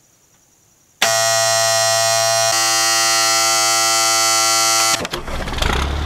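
A starter motor whines steadily.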